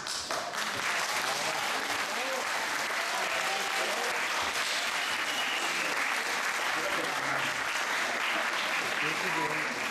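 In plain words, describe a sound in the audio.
A middle-aged man reads out through a microphone in an echoing hall.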